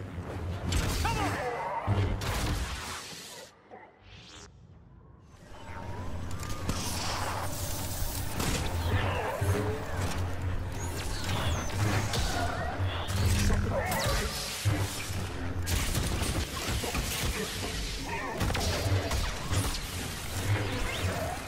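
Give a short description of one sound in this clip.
Lightsabers hum and clash in a fast fight.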